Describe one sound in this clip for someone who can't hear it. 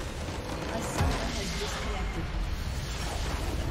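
A large crystal shatters with a loud booming burst.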